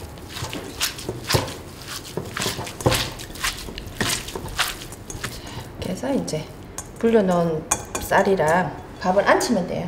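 Hands squish and toss wet greens in a glass bowl.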